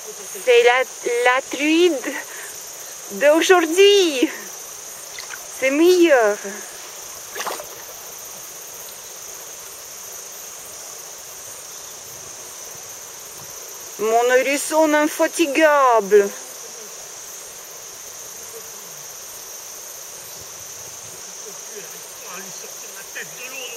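A river flows gently and steadily.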